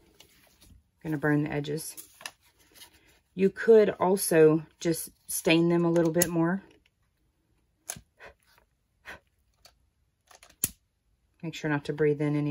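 A lighter clicks a few times.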